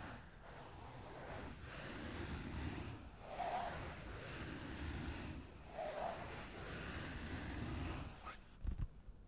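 Fingers rub and scratch softly across a sheet of paper.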